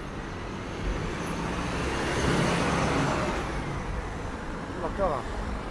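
A car drives past close by, swelling and then fading.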